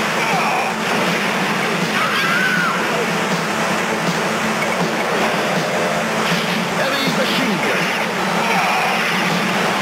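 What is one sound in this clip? Explosions boom in a retro arcade game.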